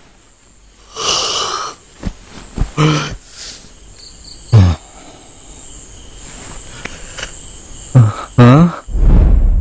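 Men grunt and shout while scuffling.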